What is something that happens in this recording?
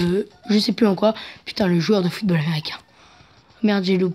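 A video game chimes as coins are collected.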